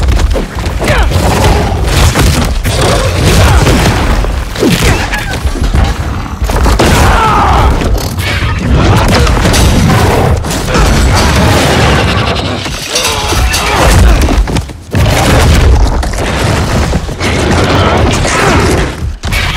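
A giant lizard creature roars.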